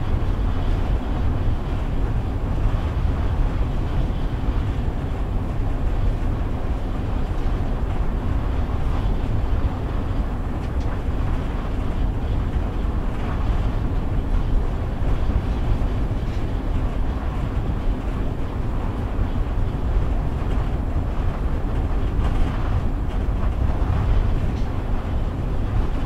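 A vehicle rumbles steadily along a road, heard from inside.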